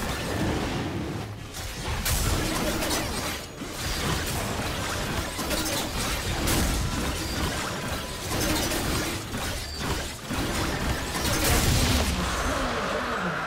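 Magic blasts and hits crackle and thud rapidly in a fierce fight.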